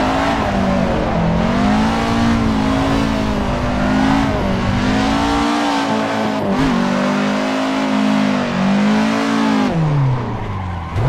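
Tyres screech on tarmac while sliding.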